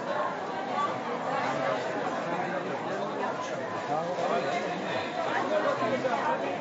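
A crowd of men and women chatters all around, close by and at a distance.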